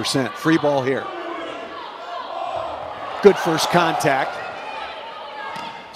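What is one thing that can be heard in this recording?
A large crowd cheers and murmurs in an echoing hall.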